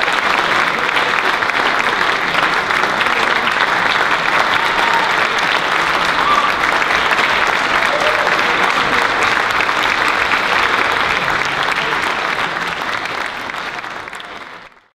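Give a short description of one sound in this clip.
An audience applauds loudly in a large hall, then the applause fades.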